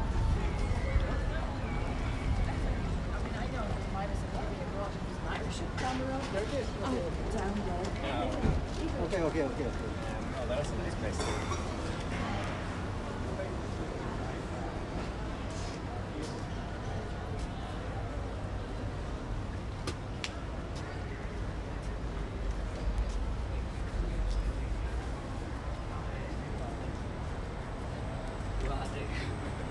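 Outdoor street noise hums steadily with a low rumble.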